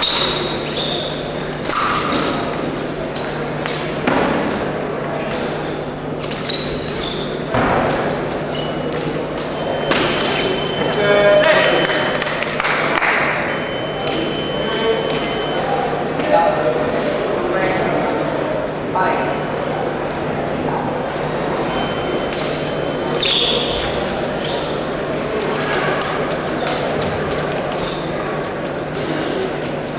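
Fencers' feet thump and squeak on the floor.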